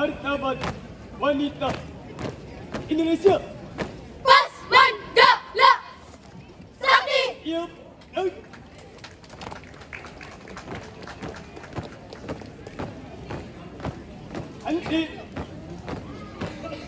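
Feet stamp in rhythm on a hard court.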